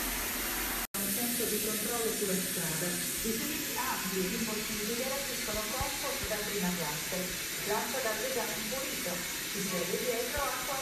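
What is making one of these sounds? A television plays speech nearby.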